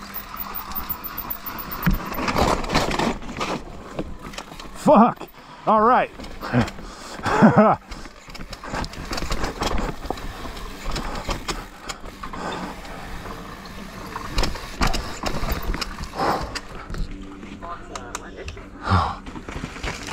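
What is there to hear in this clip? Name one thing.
Bike tyres crunch and skid over a dirt trail.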